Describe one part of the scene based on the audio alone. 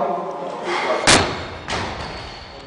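A heavy barbell crashes down onto a platform with a loud thud.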